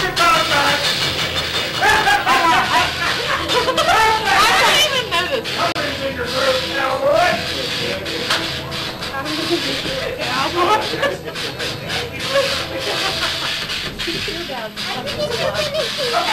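Young women laugh and shriek excitedly close by.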